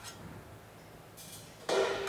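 A drum is struck lightly.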